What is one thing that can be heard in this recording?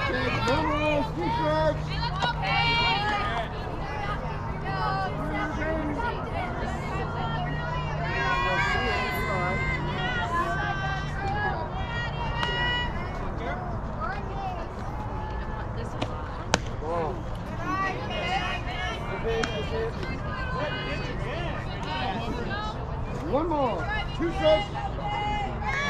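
Young girls shout and chant loudly nearby.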